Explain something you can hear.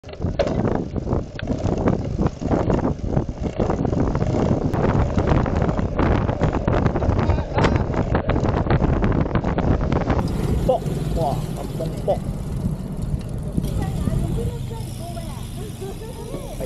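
Wind buffets the microphone while riding outdoors.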